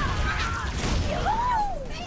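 An explosion booms in a video game.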